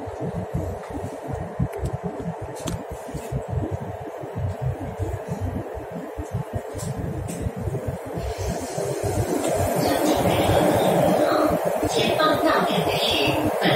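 A subway train rumbles along the tracks, growing louder.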